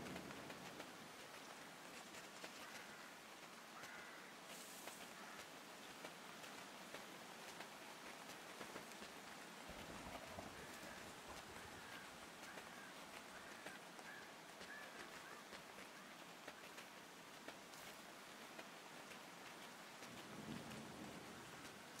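Soft footsteps of a small animal patter over the ground.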